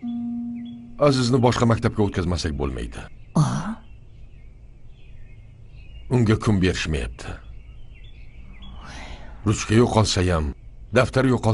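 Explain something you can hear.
A middle-aged man speaks close by in a firm, displeased tone.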